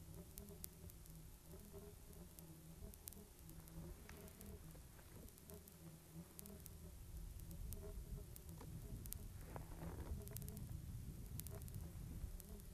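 A small model airplane engine buzzes steadily as the plane circles.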